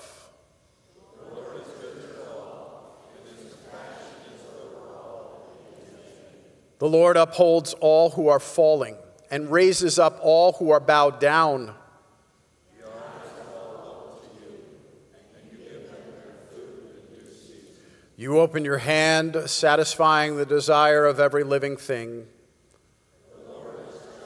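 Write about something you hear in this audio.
A congregation of men and women reads out together in a low murmur, farther off.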